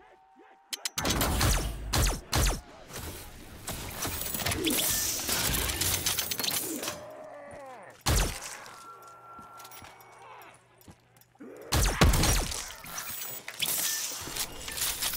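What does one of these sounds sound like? Sci-fi guns fire in loud, crackling bursts.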